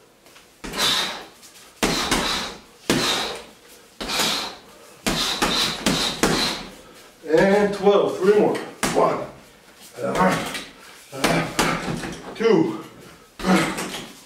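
Kicks slap against a heavy punching bag.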